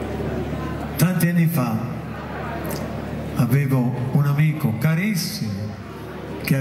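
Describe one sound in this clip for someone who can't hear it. A man speaks into a microphone, amplified through loudspeakers.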